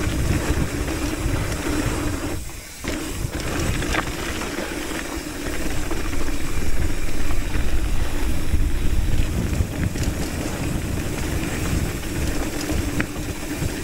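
A hardtail mountain bike's frame and chain rattle over bumps.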